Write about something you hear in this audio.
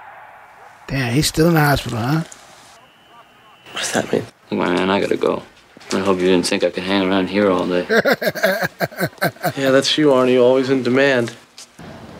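A young man speaks calmly, heard through a loudspeaker.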